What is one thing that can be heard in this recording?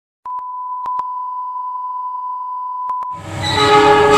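A steady high test tone sounds.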